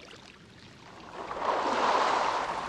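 Water splashes softly as a moose swims.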